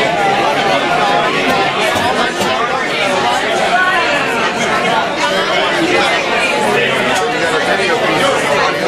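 Several acoustic guitars strum together in a lively rhythm.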